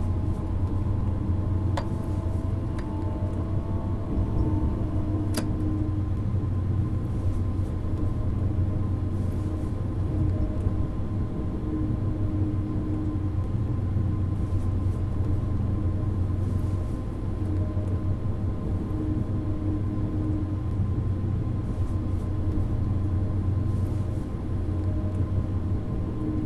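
A high-speed electric train runs at speed, rumbling on the rails as heard from inside the cab.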